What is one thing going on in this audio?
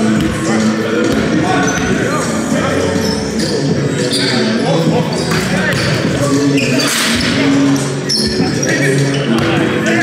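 A basketball thuds as it bounces on the floor.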